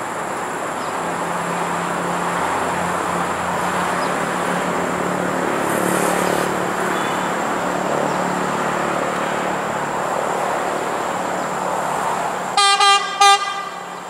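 A train rumbles closer along the tracks, growing louder.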